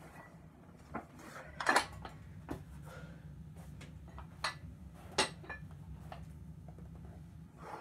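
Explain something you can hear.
Metal dumbbells clank and knock against each other.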